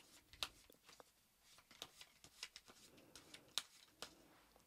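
Playing cards riffle and flick softly as they are shuffled.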